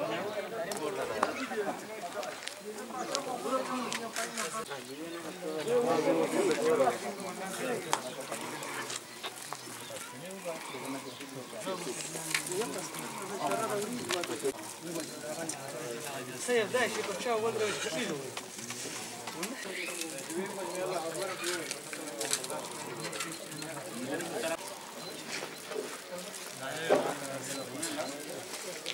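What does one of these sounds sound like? Men talk quietly nearby, outdoors.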